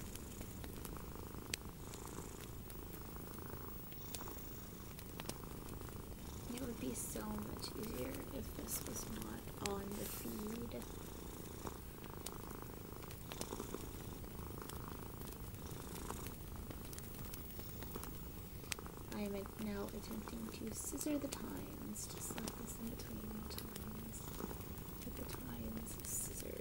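Long fingernails tap and click against a small hard object close up.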